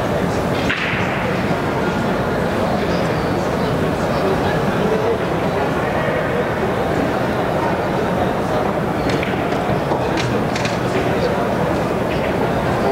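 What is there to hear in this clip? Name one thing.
People murmur steadily in a large echoing hall.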